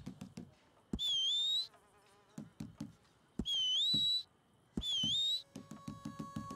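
A man whistles short, sharp notes that dip and rise in pitch.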